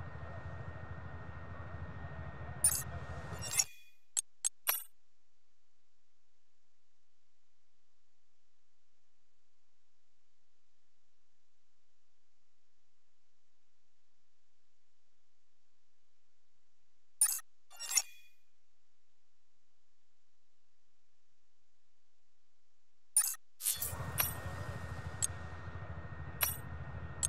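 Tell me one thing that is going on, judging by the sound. Electronic game menu music plays steadily, then cuts off and later returns.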